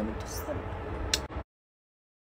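A young woman blows a kiss with a smacking sound.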